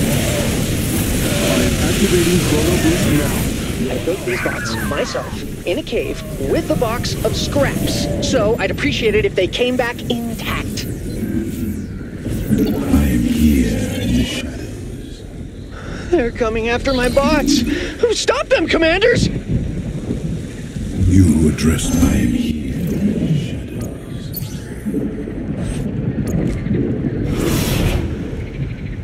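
A man talks with animation close to a microphone.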